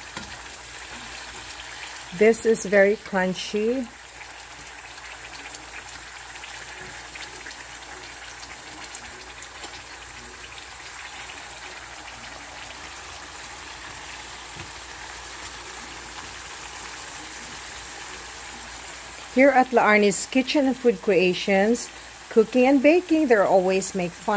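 A metal fork scrapes and taps against a frying pan.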